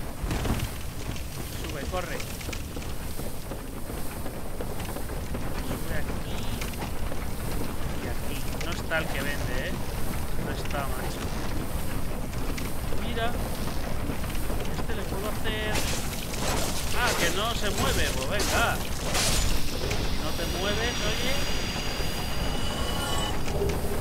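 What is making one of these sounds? A young man talks casually into a microphone.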